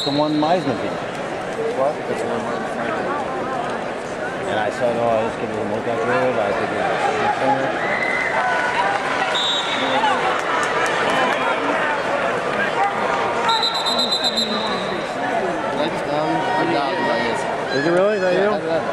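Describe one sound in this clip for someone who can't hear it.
A crowd murmurs and calls out throughout a large echoing arena.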